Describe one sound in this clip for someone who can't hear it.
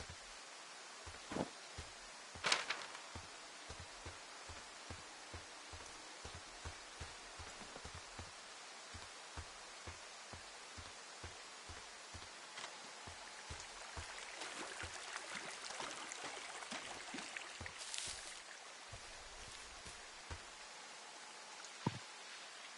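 Footsteps crunch steadily over dirt and dry ground.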